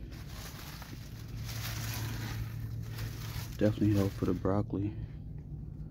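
A coarse cloth sack rustles as it is lifted and pulled aside.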